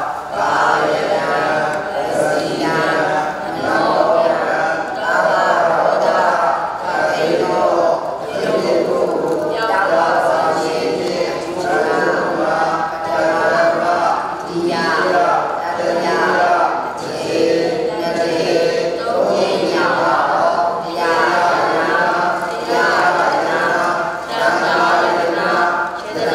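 A man chants steadily in a low, even voice, close by.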